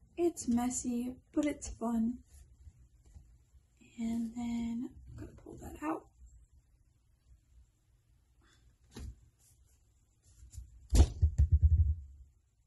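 Small metal jewelry parts click softly between fingers.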